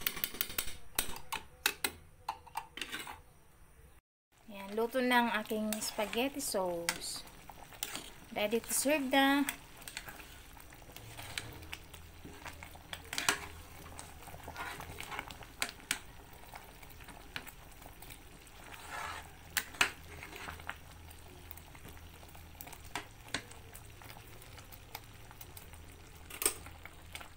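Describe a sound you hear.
A spoon scrapes and stirs thick sauce in a pot.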